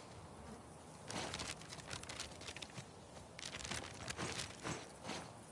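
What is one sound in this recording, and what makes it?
A paper map rustles in hands.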